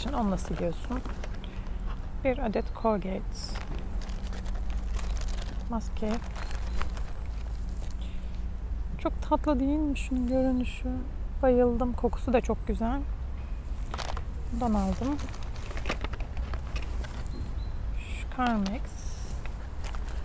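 Hands rummage through a cloth bag, rustling its contents.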